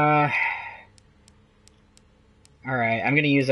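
Soft game menu clicks tick several times.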